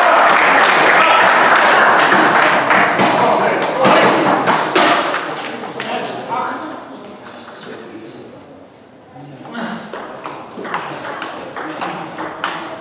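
A table tennis ball clicks back and forth off paddles and the table in a large echoing hall.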